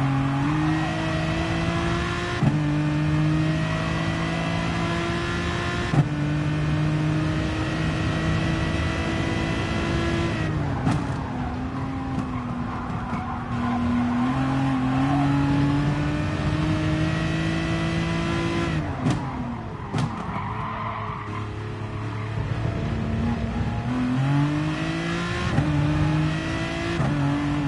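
A racing car engine roars loudly, rising in pitch through each gear and dropping sharply at each shift.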